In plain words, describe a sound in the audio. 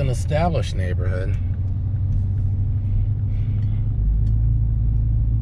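A car engine rumbles low and steady, heard from inside the car.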